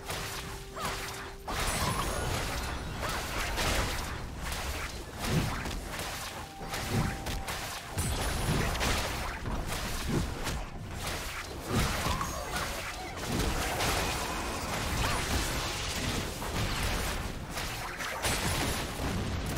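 Game spell effects crackle and hits clash in a battle.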